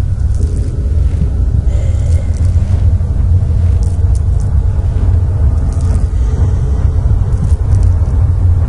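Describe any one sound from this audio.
A man talks quietly into a microphone.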